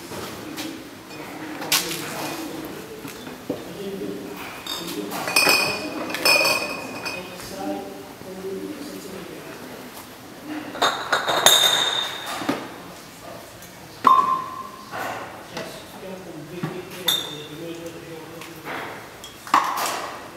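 Glass bottles clink as they are handled.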